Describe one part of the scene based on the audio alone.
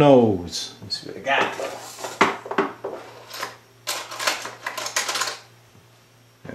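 Small metal tools rattle and clink.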